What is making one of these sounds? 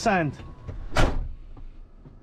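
A truck door slams shut.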